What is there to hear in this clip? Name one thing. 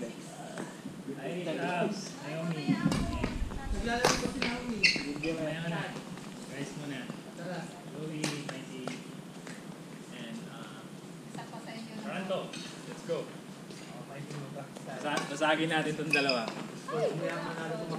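Young women talk and call out in a large echoing hall.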